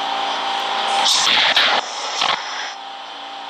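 Subway train doors slide shut with a thud.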